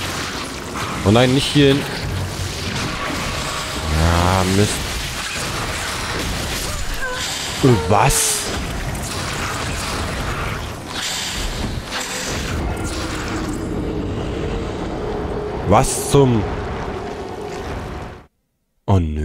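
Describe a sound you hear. A huge beast lets out deep, bending groans and cries.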